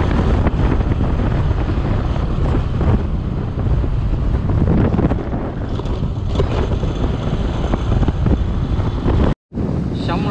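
Wind roars loudly across a microphone.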